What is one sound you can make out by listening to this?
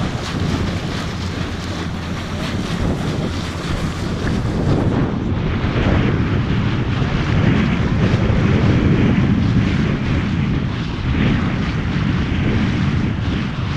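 Wind blows and rumbles outdoors over open water.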